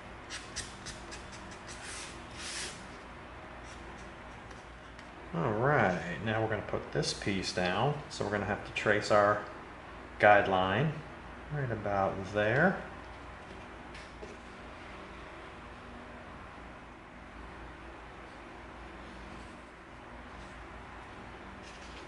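Gloved hands rub and press on a piece of soft foam.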